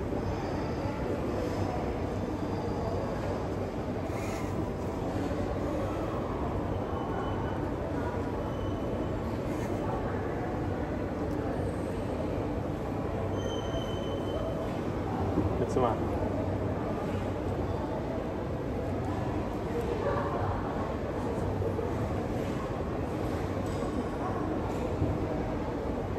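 A young man talks softly nearby.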